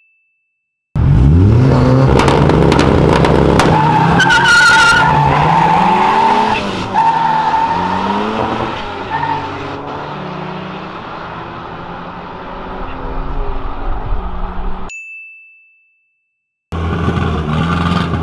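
Car engines rev loudly at a start line.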